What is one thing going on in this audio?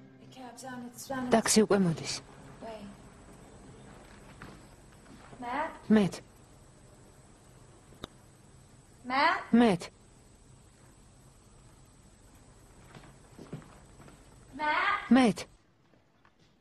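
A young woman calls out loudly and anxiously, several times.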